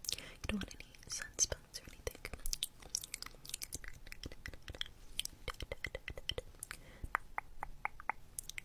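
Gloved hands rub foam close to a microphone with soft, crackly squishing and tapping sounds.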